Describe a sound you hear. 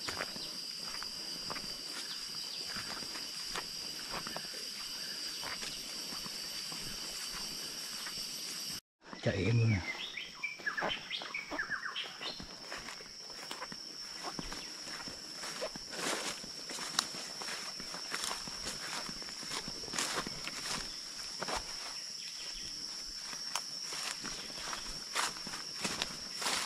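Footsteps rustle through leaves and undergrowth.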